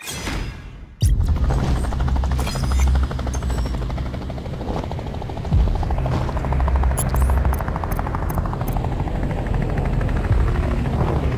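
A helicopter hovers with a loud, steady throbbing rumble.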